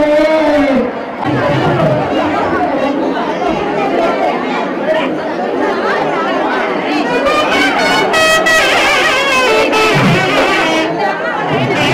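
A large crowd chatters and calls out all around, close by.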